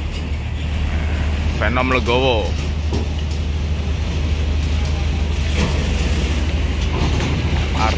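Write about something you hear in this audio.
A bus engine rumbles steadily as the bus pulls slowly away.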